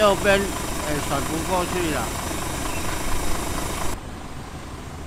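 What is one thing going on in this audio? A middle-aged man speaks agitatedly, close by.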